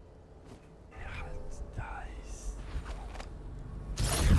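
A young man talks calmly into a microphone.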